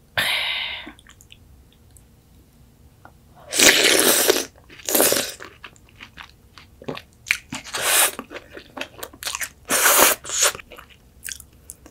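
A young woman chews food with wet smacking sounds close by.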